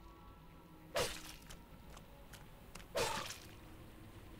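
Sharp slashing hits ring out in a game.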